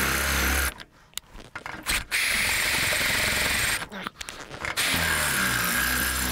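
A cordless drill whirs loudly in short bursts.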